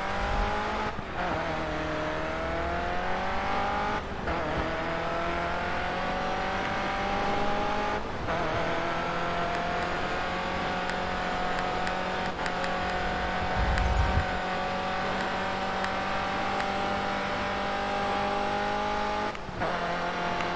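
A racing car engine briefly drops in pitch at each gear change.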